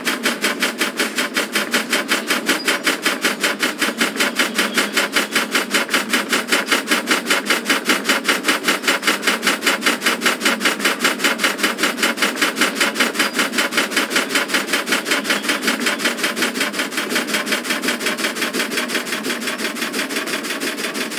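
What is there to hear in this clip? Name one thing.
A steam locomotive chuffs quickly and steadily.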